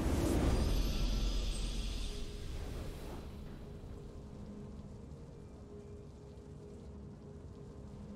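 A triumphant fanfare plays as a video game match ends.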